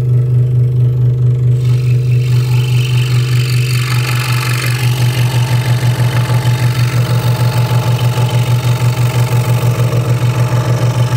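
A scroll saw hums and buzzes steadily.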